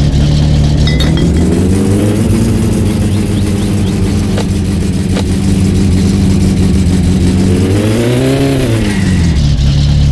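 A car engine revs up and drops back twice.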